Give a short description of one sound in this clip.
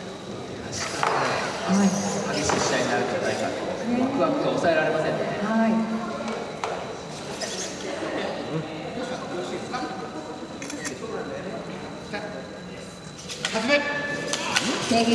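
Voices of a crowd murmur nearby.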